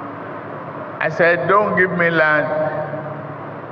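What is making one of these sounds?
A man speaks slowly into a microphone over loudspeakers.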